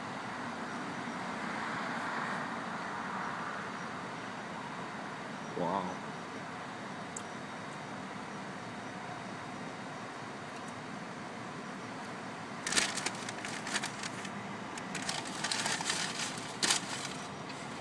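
Traffic hums steadily outside a car.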